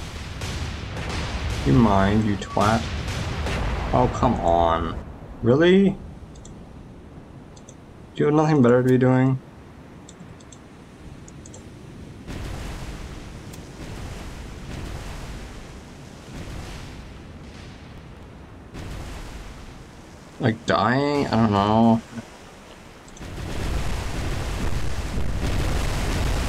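Waves wash and churn steadily.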